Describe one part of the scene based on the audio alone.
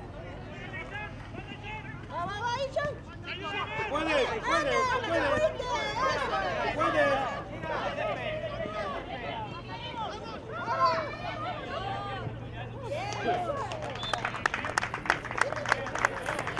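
Young boys shout and call out across an open field.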